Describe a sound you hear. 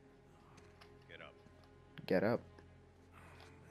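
A man speaks curtly and firmly.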